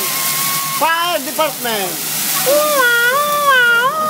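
Flames whoosh up from a hot griddle.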